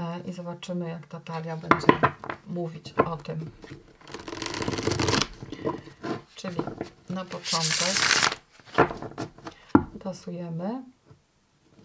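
A deck of playing cards is tapped and squared with soft knocks.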